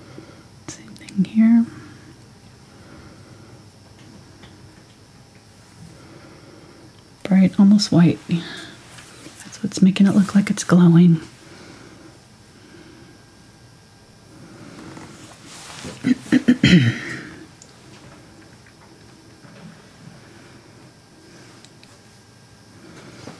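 A paintbrush brushes softly across canvas.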